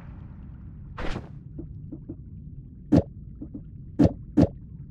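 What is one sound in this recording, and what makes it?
Short soft clicks sound as a game menu is opened and browsed.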